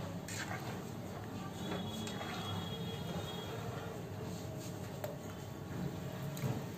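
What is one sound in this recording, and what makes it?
A metal spoon clinks against the side of a pot.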